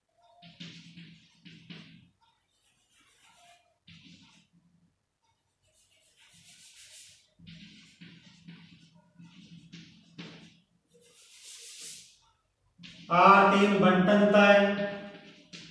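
Chalk scratches and taps on a chalkboard.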